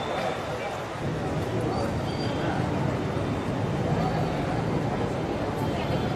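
A crowd of men and women murmurs and chats nearby, outdoors.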